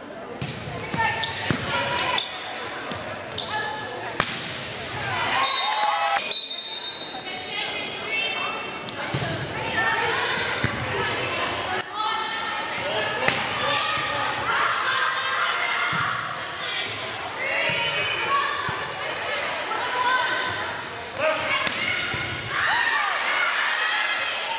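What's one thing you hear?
A volleyball is struck by hands in a large echoing gym.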